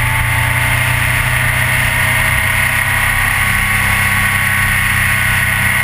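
A motorcycle engine drones steadily at speed.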